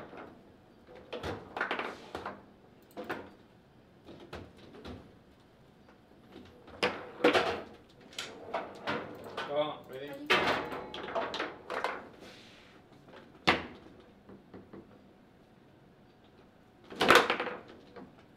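A hard plastic ball knocks and clacks against the players and walls of a foosball table.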